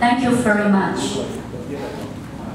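A woman speaks through a microphone over loudspeakers.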